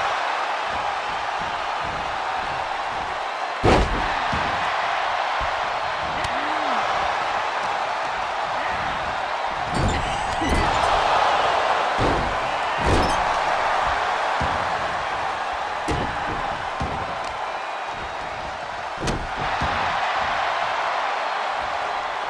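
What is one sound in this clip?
A large crowd murmurs and cheers steadily in an arena.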